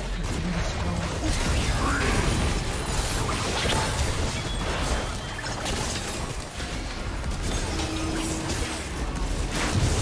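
Magic spells whoosh and crackle in a busy video game battle.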